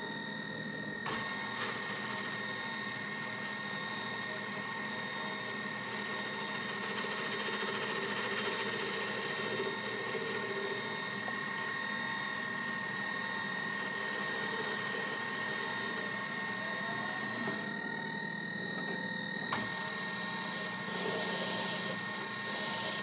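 A lathe motor whirs steadily as the chuck spins.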